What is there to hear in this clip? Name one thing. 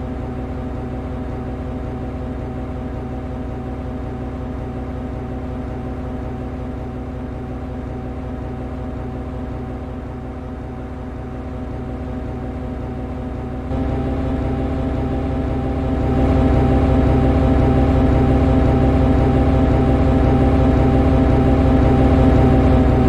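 An electric locomotive's engine hums steadily and grows louder partway through.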